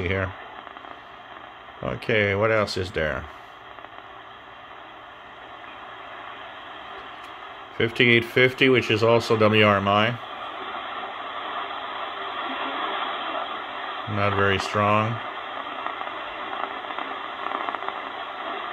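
Radio static hisses steadily through a small loudspeaker.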